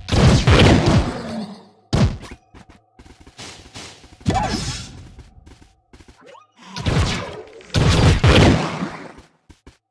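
Blocks shatter with loud crashing bursts.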